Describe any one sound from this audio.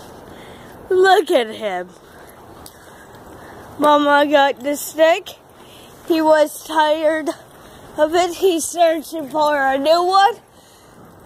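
A puppy whimpers and yelps close by.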